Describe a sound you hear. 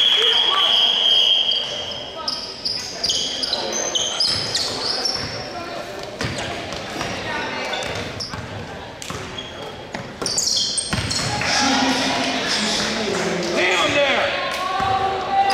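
Sneakers squeak sharply in a large echoing gym.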